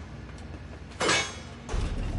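A heavy metal door is struck with a loud, ringing clang.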